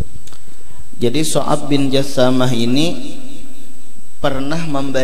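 A man speaks through a microphone in a reverberant hall, chanting in a melodic voice.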